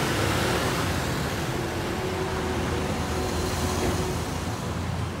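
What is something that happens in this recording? Motor scooters ride past on a street.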